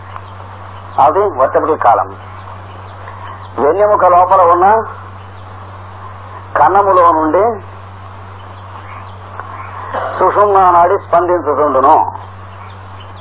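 An elderly man sings short drawn-out phrases with pauses between them.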